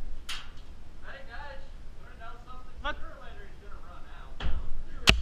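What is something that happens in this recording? A man shouts from a short distance.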